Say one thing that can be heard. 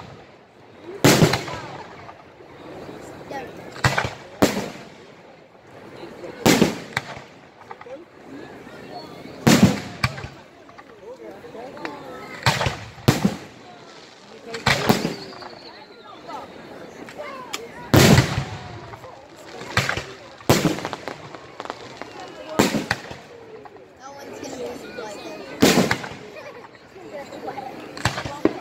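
Fireworks burst with loud booming bangs that echo.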